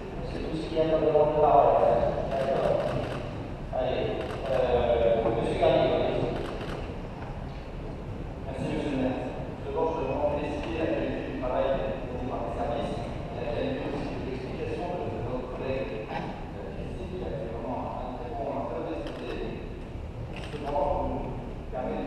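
A man speaks steadily through a microphone and loudspeakers in a large echoing hall.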